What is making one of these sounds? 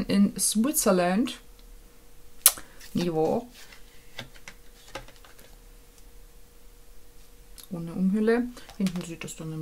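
A young woman talks to a nearby microphone in a lively way, with pauses.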